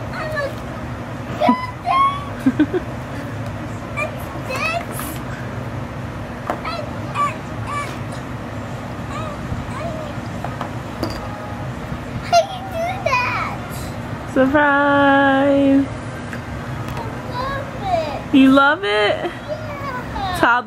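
A young child speaks and shouts excitedly close by.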